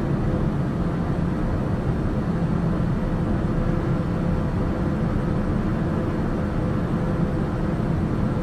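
A single-engine turboprop drones steadily in cruise, heard from inside the cabin.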